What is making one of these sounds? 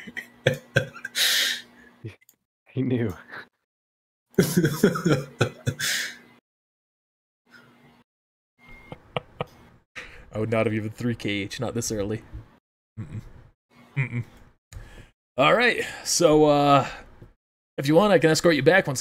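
Several men talk and laugh with animation over an online call.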